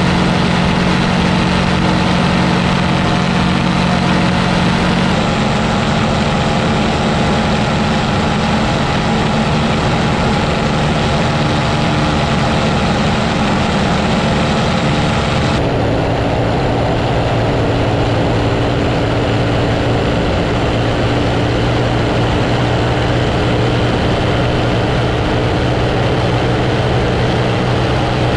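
Wind rushes hard past the microphone.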